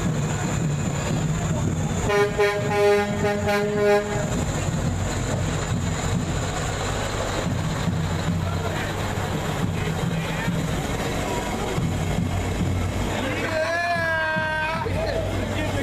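A large truck engine rumbles steadily nearby.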